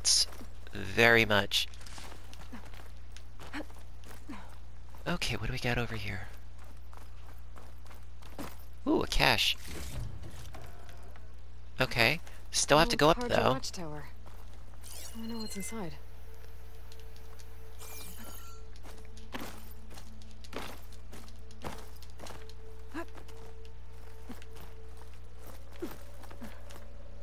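Footsteps and hands scrape and tap on rock.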